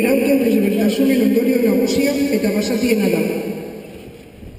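A crowd of men and women sings together loudly outdoors, then stops.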